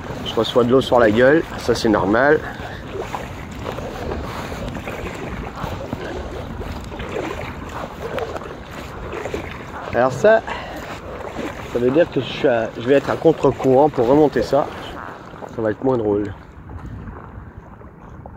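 Water laps against the side of a kayak.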